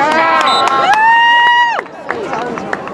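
A referee's whistle blows.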